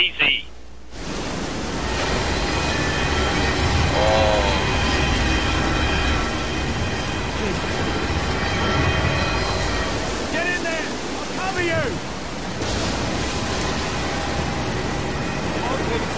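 Strong wind roars and howls in a storm.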